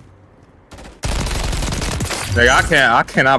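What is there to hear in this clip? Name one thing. An automatic rifle fires a rapid burst.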